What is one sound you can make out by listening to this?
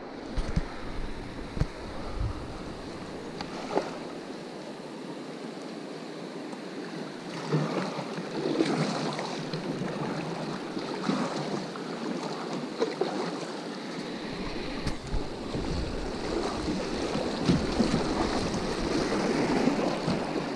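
A river rushes and splashes steadily close by.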